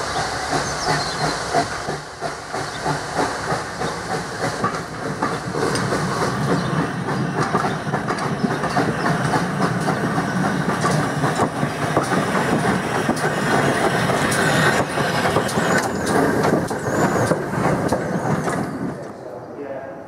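A steam locomotive chuffs heavily as it approaches and passes close by.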